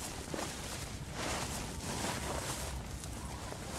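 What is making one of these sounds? A body scrapes as it is dragged across sand.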